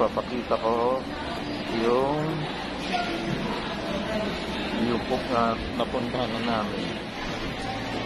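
A man talks close to a phone microphone.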